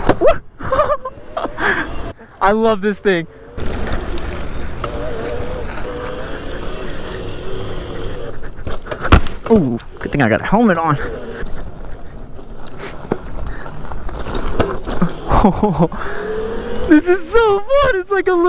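A small motorbike engine whines, rising and falling in pitch as it revs.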